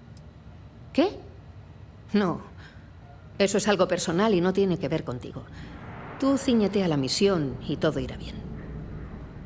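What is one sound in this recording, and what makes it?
A young woman speaks calmly and clearly through a microphone.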